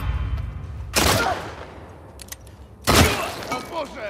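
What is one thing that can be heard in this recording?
A gunshot cracks loudly.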